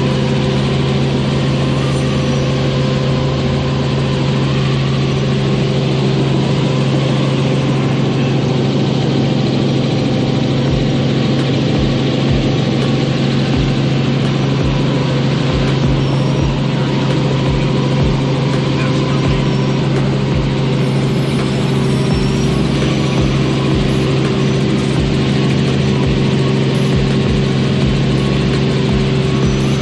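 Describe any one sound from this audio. A helicopter engine and rotor drone loudly and steadily from inside the cabin.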